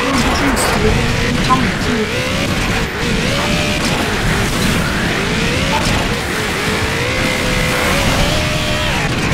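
A vehicle engine roars and revs up and down.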